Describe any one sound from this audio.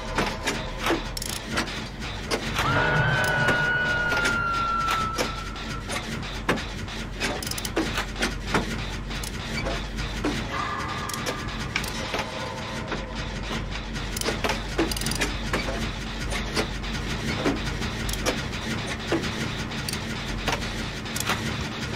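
A machine rattles and clanks steadily with sharp metallic clicks.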